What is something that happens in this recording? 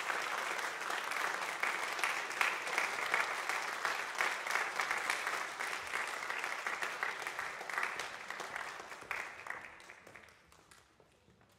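An audience applauds loudly in a large echoing hall, then the clapping fades away.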